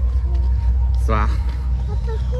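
A little girl speaks in a high voice.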